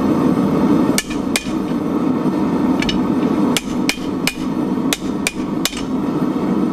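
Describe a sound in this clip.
A gas forge roars steadily.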